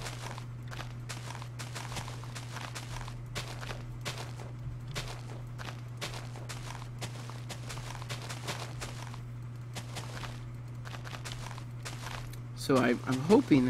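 Grass and dirt crunch in quick, repeated bursts as blocks are dug.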